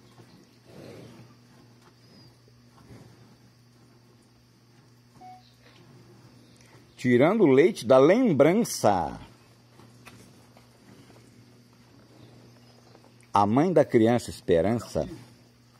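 Milk squirts into a bucket as a cow is milked by hand.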